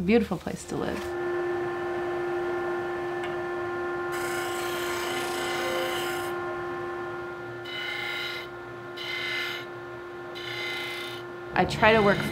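A disc sander hums steadily.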